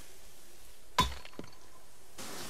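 Something strikes stone with a sharp crack.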